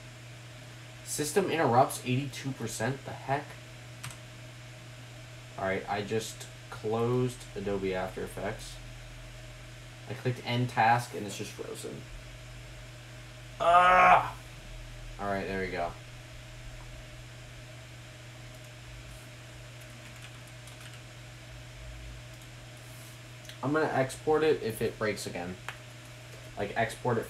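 A man talks calmly and close by, in short bursts.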